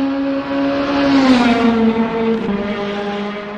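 A racing car passes close by and its engine pitch drops.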